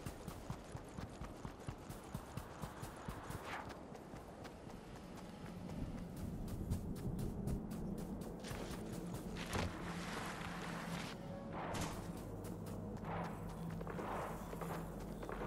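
Footsteps patter quickly on dry ground.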